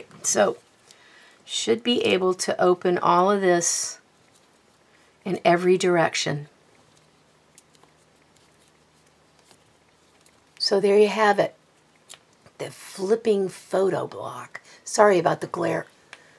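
Paper rustles softly as it is handled.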